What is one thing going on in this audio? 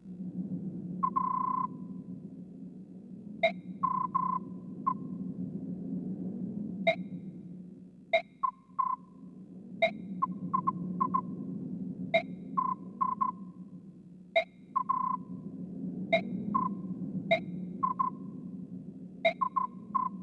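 Short electronic beeps and clicks sound as dialogue text advances.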